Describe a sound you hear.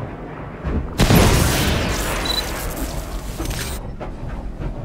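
A flash grenade bursts with a loud bang and a fading ringing hiss.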